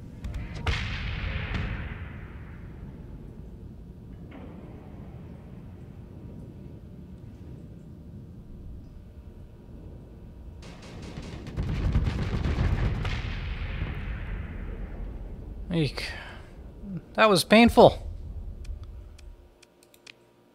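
A deep rumbling explosion booms and fades in a space combat game.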